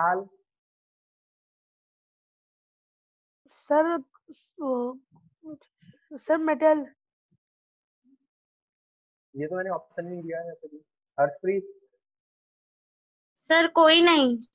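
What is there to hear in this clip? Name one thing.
Children talk over an online call, in short bursts with pauses.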